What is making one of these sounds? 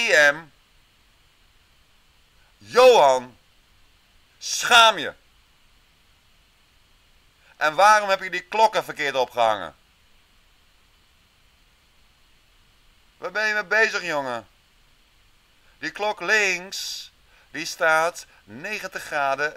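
A man speaks calmly in short bursts through a microphone, with pauses.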